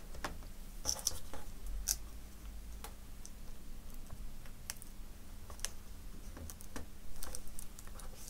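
Tape peels off with a soft crackle.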